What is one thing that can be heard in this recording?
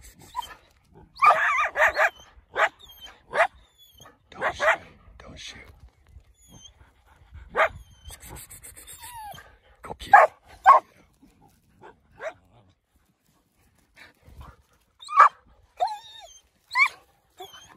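Coyotes yip and howl in short bursts nearby.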